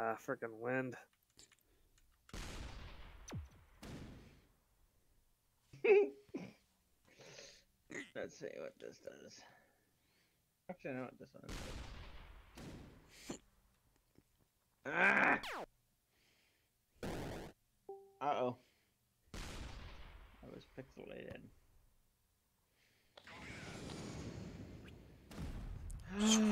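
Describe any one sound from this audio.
Game shots boom and explode.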